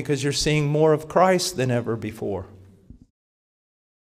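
A middle-aged man speaks with animation into a handheld microphone.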